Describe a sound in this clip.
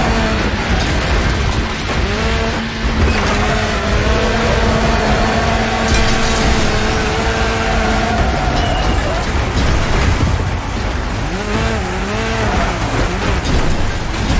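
Metal crashes and crunches in hard impacts.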